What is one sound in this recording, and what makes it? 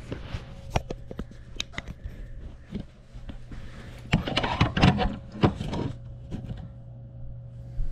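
Fabric rustles and things knock close by as a bag is handled.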